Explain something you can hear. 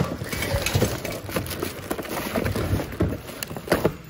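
A plastic bag crinkles as it is handled close by.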